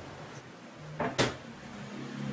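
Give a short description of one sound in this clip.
A cutting board is set down on a wooden table with a thud.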